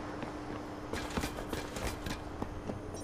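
Footsteps clank on the rungs of a metal ladder.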